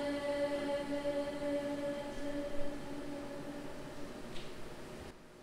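A woman sings in a large echoing hall.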